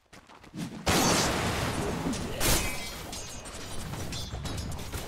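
Game spell effects crash and whoosh in a fight.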